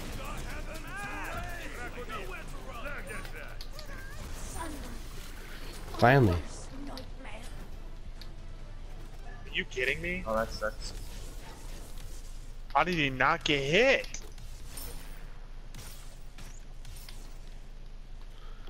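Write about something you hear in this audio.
Magic blasts and clashing weapons sound in a video game fight.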